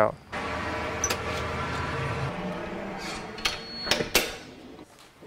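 A door latch clicks as a door is pulled open.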